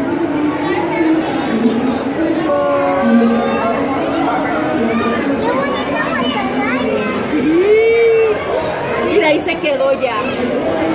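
Several voices chatter and call out nearby in an echoing room.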